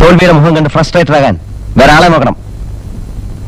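A man speaks clearly and with animation, close by.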